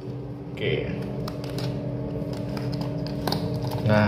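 A foil sachet crinkles as it is handled.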